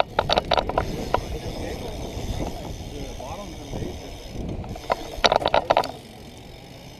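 A bike clatters with sharp metallic rattles.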